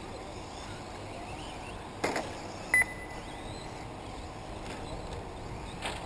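A small remote-control car whirs along a dirt track in the distance.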